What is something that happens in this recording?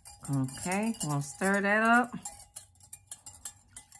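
A small whisk stirs liquid in a glass cup.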